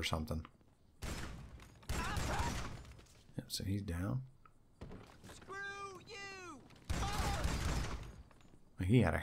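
A shotgun fires loudly several times.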